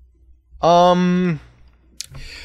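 A young man lets out a long drawn-out cry.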